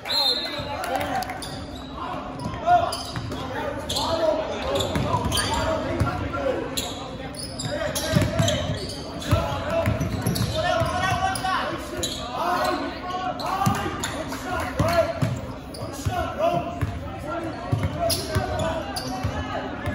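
A crowd of spectators murmurs and calls out in an echoing gym.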